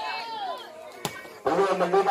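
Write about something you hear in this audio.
A volleyball is struck hard with a sharp slap.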